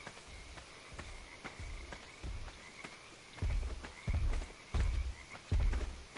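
A large creature stomps with heavy, low thuds nearby.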